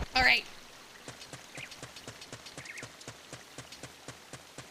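Quick light footsteps patter on dirt.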